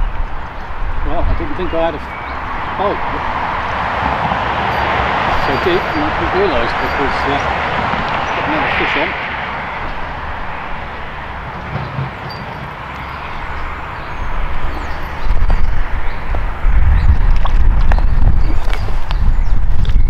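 Wind gusts outdoors, buffeting loudly toward the end.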